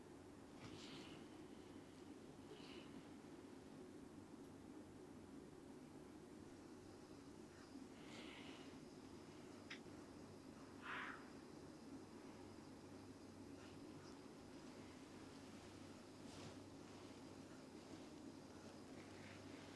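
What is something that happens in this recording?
Fingers softly rub and rustle through hair.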